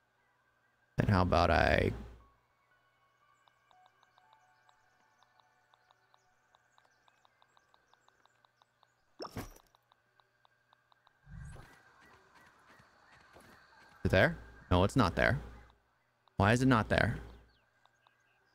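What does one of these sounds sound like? A man talks close to a microphone with animation.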